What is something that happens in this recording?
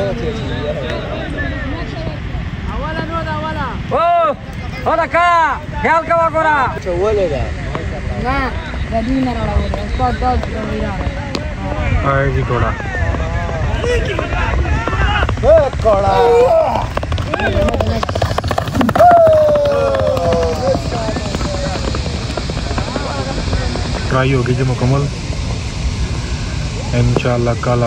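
Men shout and cheer loudly nearby, outdoors.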